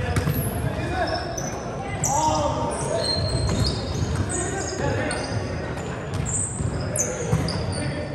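Sneakers squeak sharply on a gym floor, over and over.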